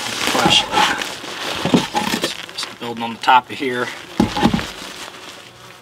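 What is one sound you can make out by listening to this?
A wooden board scrapes and knocks as it is lifted.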